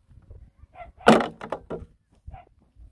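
Stones clunk into a metal wheelbarrow.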